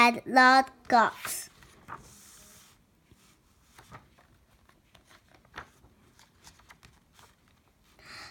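A paper page turns with a soft rustle.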